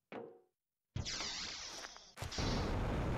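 A heavy sliding door opens with a loud hiss.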